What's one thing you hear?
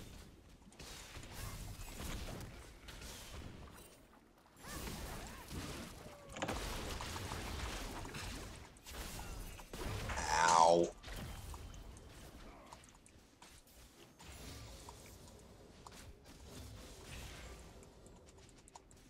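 Game spell effects whoosh and crackle during a fight.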